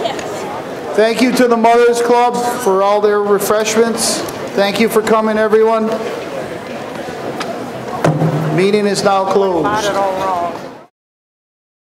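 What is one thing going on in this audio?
A middle-aged man speaks through a microphone and loudspeakers, echoing in a large hall.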